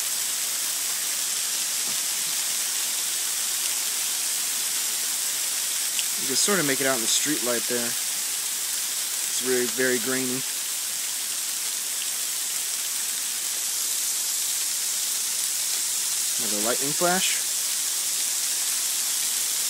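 A large fire roars and crackles in the distance.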